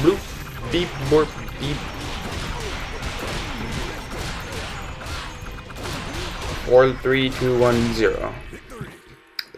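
Swords swish and strike in quick succession.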